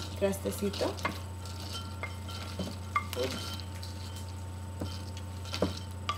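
Toasted seeds rattle as they are poured into a glass bowl.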